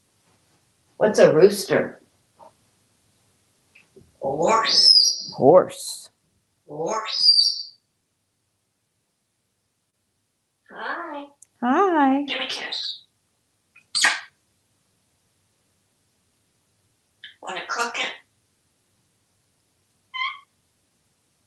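A parrot chatters and squawks up close, in short bursts with long pauses between.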